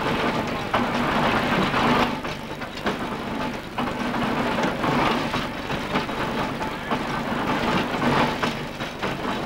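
The threshing machine's wheels and belts knock in a steady rhythm.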